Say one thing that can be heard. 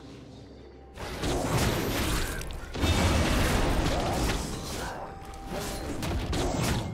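Video game combat sound effects clash and burst.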